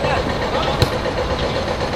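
A football is kicked with a sharp thud outdoors.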